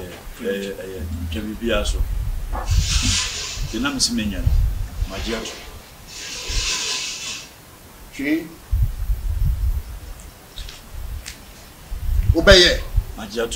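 A second man answers calmly close by.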